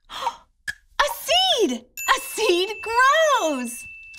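A young woman speaks brightly and with animation, close to a microphone.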